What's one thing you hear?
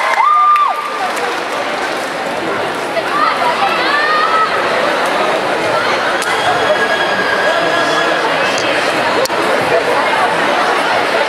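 A large crowd cheers and shouts in a big echoing hall.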